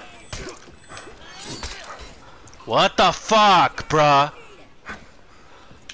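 A sword swishes and strikes in quick blows.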